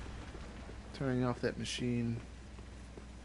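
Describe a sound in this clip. A young man speaks briefly and loudly into a close microphone.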